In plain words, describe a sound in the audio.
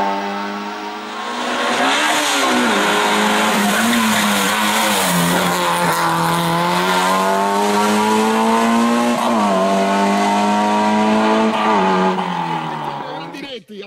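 A racing car engine revs hard and climbs through the gears as the car speeds past.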